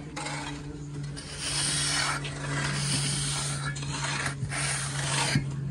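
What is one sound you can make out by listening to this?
A trowel scrapes across wet cement.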